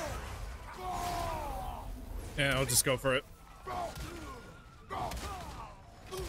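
Fiery blasts burst with a loud roar.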